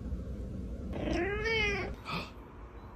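A cat meows.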